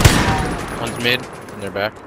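An assault rifle fires.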